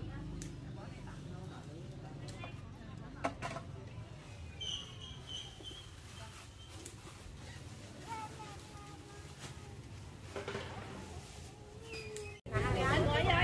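Women chat calmly at a distance.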